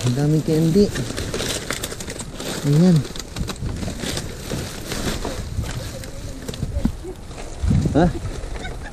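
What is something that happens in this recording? Plastic bags rustle and crinkle as hands dig through them.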